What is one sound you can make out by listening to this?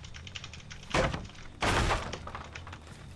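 Wooden boards crack and splinter with loud crashes.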